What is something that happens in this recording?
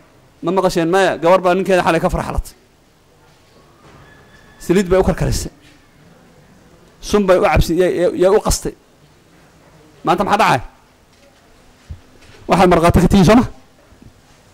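A man speaks forcefully into a close microphone in short bursts with pauses.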